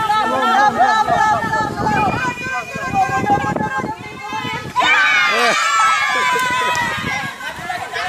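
A group of adults and children shout and cheer excitedly outdoors.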